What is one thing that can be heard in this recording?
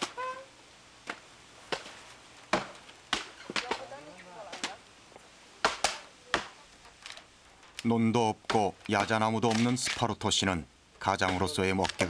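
Axes thud into wood with repeated heavy blows.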